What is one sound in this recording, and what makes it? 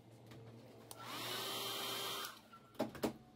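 A hair dryer blows loudly for a moment.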